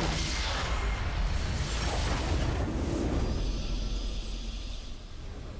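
Spell effects crash and crackle in a game battle.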